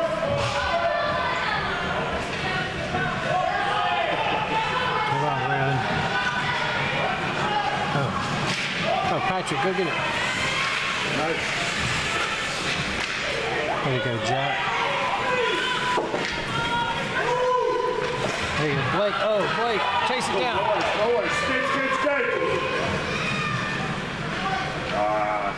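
Spectators shout and cheer in a large echoing rink.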